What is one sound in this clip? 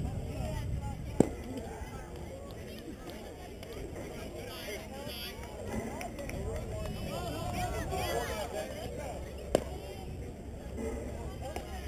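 Young players and onlookers chatter and call out in the distance.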